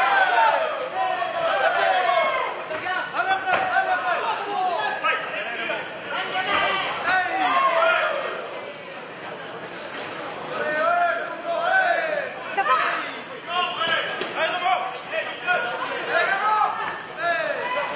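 A crowd shouts and cheers loudly in a large hall.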